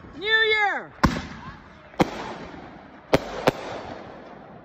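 Fireworks bang sharply overhead.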